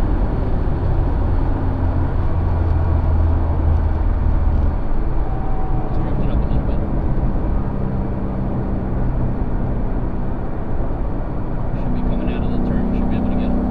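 A car engine drones steadily at speed from inside the car.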